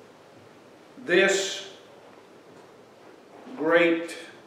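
An elderly man speaks slowly and deliberately into a microphone in a room with a slight echo.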